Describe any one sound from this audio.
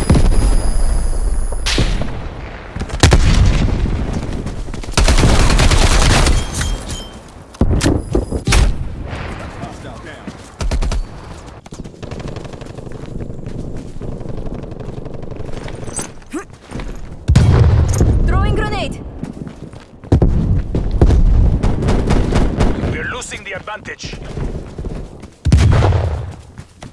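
Gunfire crackles in loud rapid bursts.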